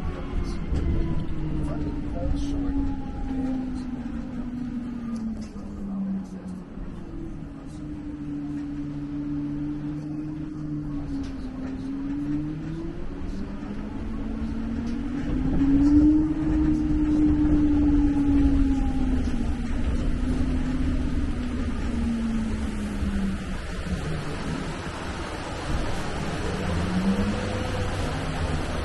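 An engine hums steadily, its pitch rising and falling.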